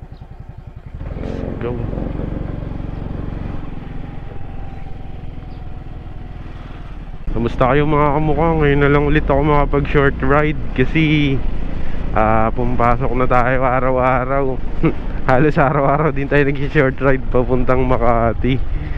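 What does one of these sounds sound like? A scooter engine hums as the scooter rides down a street.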